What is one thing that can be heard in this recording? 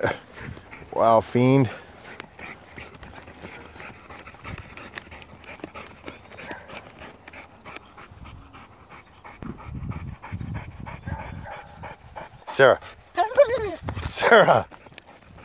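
A dog whines and yelps in short high cries.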